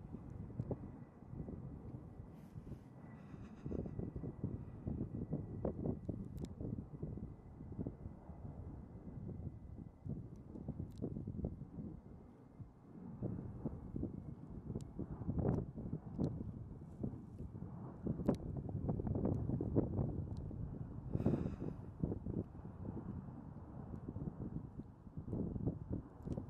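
A propeller plane drones far off and slowly grows closer.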